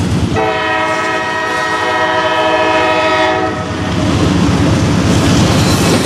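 A diesel locomotive engine roars as it approaches.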